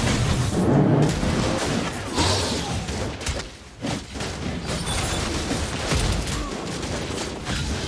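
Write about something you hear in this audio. Game battle effects clash and burst with magical whooshes and hits.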